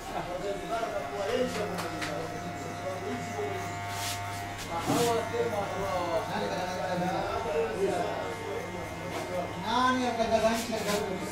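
Electric hair clippers buzz steadily.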